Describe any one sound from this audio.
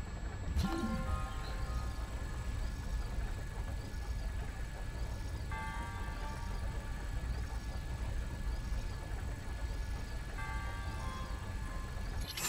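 A low magnetic hum drones steadily.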